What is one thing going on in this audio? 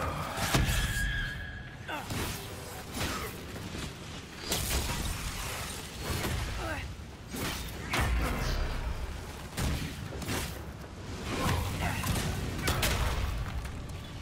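Fire roars and crackles in bursts.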